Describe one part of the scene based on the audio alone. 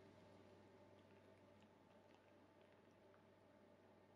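A fork scrapes and clinks lightly against a plate.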